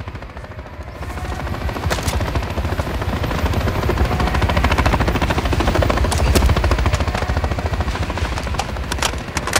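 A helicopter's rotor thumps and roars steadily.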